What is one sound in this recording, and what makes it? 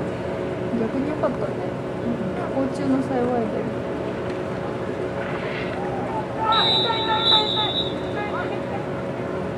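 Players and onlookers shout faintly in the distance outdoors.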